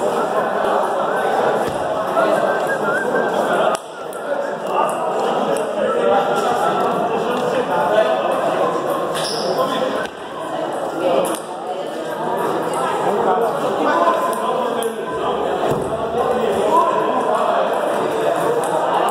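Several men talk nearby in an echoing hall.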